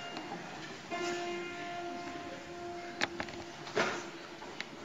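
A choir of girls softly hums a held note in a large hall.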